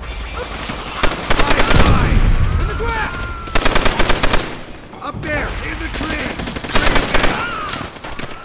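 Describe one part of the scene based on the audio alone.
A machine gun fires in rapid, loud bursts.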